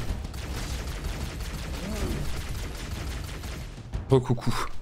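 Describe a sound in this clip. Gunshots from a video game rattle rapidly.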